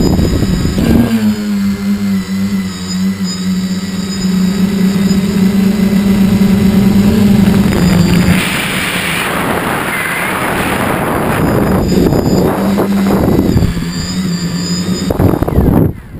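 Drone propellers hum with a steady, high buzz.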